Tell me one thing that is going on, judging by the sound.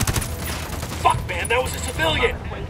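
Rifle shots crack in a quick burst.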